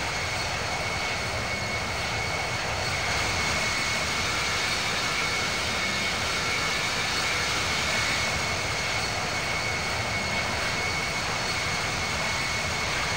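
Jet engines roar steadily as an airliner flies past.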